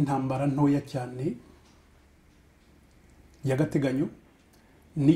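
A middle-aged man speaks calmly and close to a microphone, pausing between phrases.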